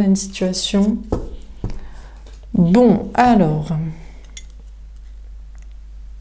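A card deck is set down softly on a cloth.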